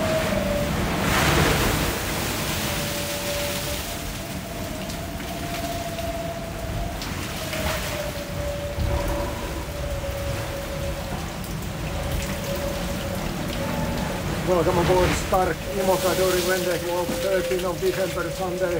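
Spray splashes hard against a plastic cover.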